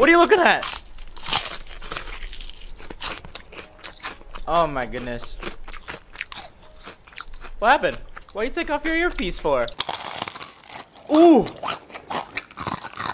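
A young man chews crispy fried food with loud crunches close to a microphone.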